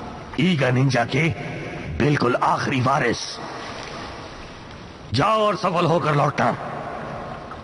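An elderly man speaks slowly and sternly.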